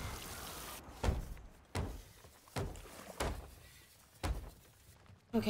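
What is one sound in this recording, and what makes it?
A hammer knocks on wooden planks in sharp, spaced blows.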